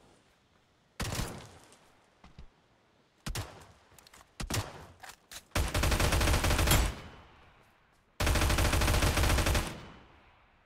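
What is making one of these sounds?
Rapid gunfire bursts loudly and sharply.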